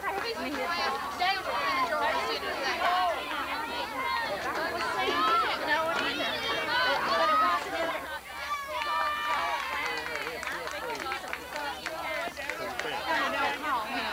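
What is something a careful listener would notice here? Young girls chatter and call out to each other close by, outdoors.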